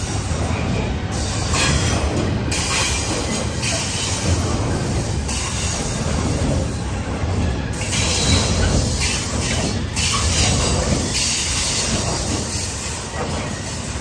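Steel wheels clatter rhythmically over rail joints.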